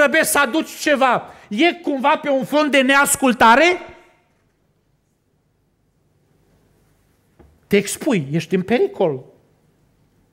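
A middle-aged man preaches with animation into a microphone, heard through a loudspeaker.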